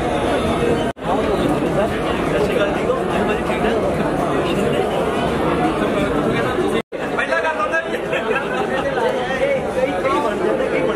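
A crowd of people chatter and talk over one another close by.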